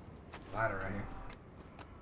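Boots clang on a metal ladder rung by rung.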